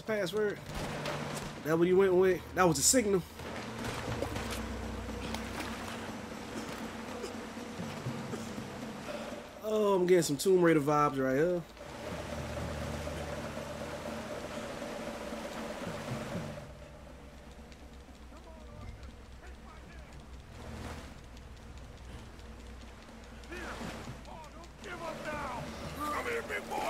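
Fast river water rushes and churns.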